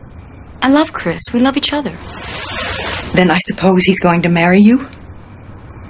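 A young woman speaks anxiously and close by.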